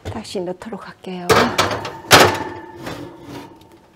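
A metal baking tray slides into an oven with a clatter.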